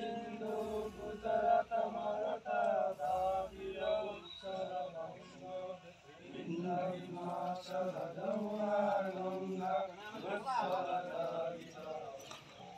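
A group of men sing together outdoors.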